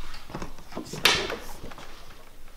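A refrigerator door opens with a soft suction pop.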